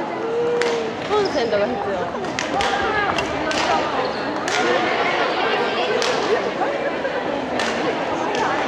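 A crowd of young people chatter and call out in the background.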